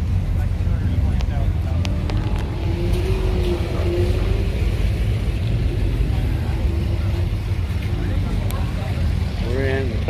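Men and women chatter at a distance.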